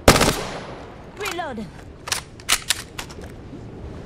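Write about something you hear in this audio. A gun's magazine clicks as it is reloaded.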